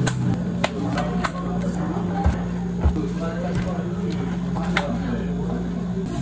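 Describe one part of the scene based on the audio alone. Plastic cups knock and rattle as they are picked up and moved.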